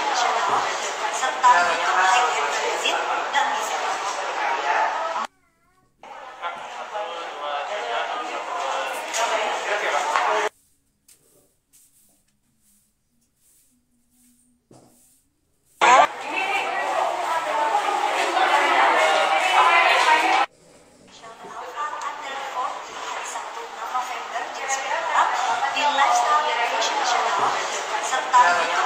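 A young woman speaks cheerfully into a microphone.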